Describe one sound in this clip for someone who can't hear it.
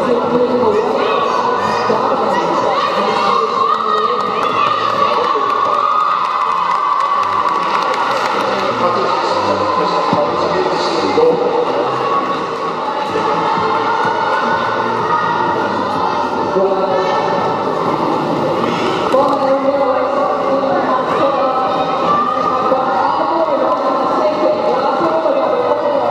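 Skate wheels roll and rumble on a wooden floor.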